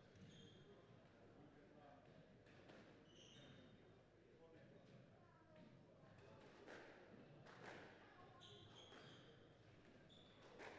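Mops swish across a hard floor.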